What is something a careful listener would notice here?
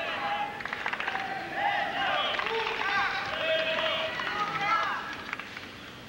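A large crowd murmurs and chatters.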